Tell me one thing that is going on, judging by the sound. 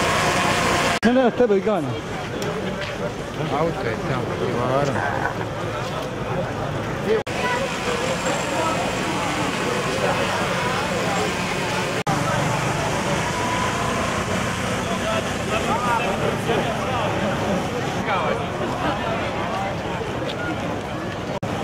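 A crowd of marchers talks and shouts outdoors.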